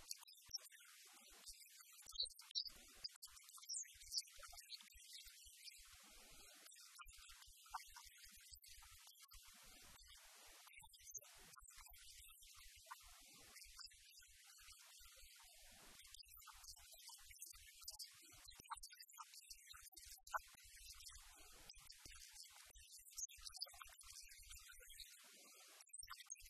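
An older woman speaks calmly through a small clip-on microphone.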